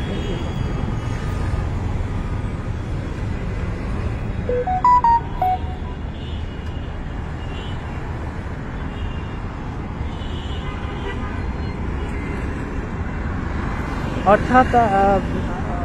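Traffic rumbles steadily on a busy street outdoors.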